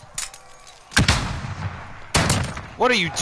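Shotguns fire loud blasts.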